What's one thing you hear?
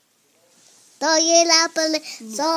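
A young child squeals loudly in a high voice close by.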